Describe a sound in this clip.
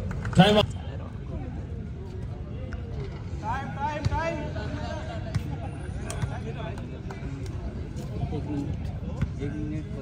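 A crowd of spectators chatters outdoors.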